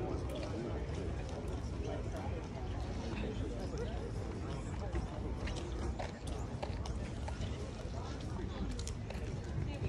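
Flags flap in the wind.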